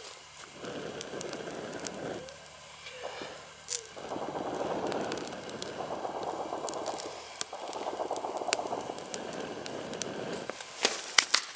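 Twigs crackle and pop as they burn.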